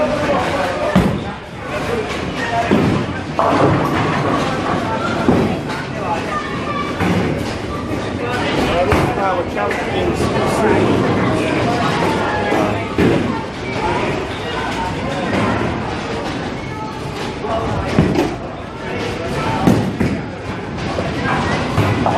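Bowling pins clatter as a ball strikes them.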